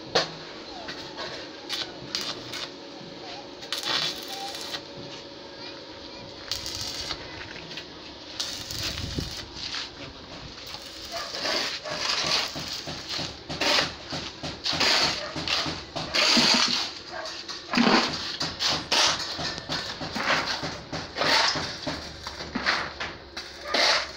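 An electric welding arc crackles and sizzles.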